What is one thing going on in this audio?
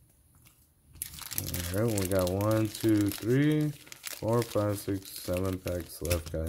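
A foil card pack crinkles in a hand.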